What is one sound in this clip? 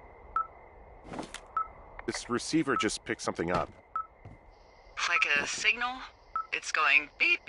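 A walkie-talkie crackles and hisses with bursts of static.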